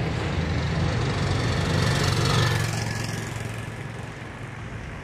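A motorcycle roars past and fades.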